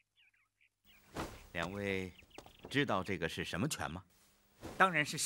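A middle-aged man asks a question calmly.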